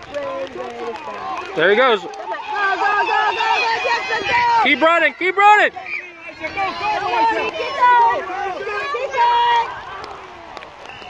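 Adults and children shout and cheer nearby outdoors.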